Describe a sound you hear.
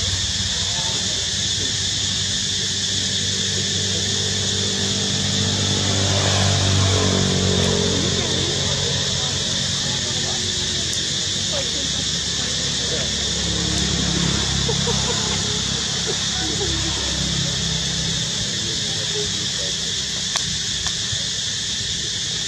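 Dry leaves rustle as monkeys shift on the ground.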